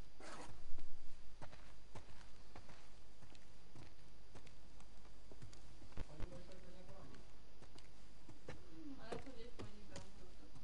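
Footsteps thud slowly on creaking wooden floorboards and stairs.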